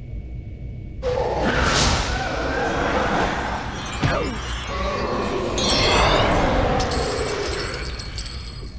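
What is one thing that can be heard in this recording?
Magical spell effects whoosh and shimmer.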